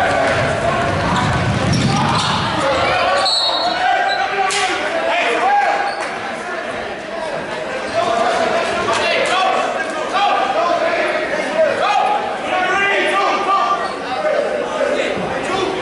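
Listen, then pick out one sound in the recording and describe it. Basketball shoes squeak sharply on a wooden court.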